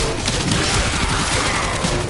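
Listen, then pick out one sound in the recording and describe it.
A blade slashes through the air.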